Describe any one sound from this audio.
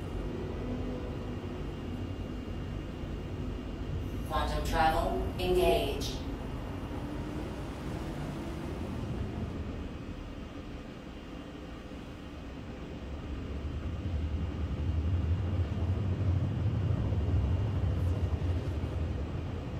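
A spaceship engine hums with a low rumble that swells toward the end.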